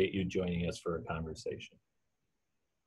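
A middle-aged man speaks calmly and close to the microphone, as on an online call.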